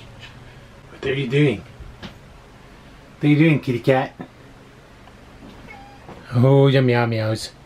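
A cat meows loudly close by.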